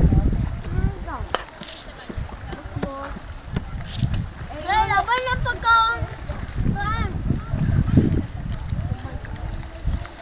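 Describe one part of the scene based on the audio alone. Dolphins break the water's surface with light splashes.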